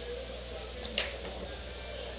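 A cue ball cracks into a rack of pool balls on the break.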